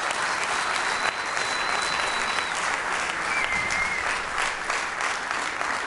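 A jazz band plays in a large hall.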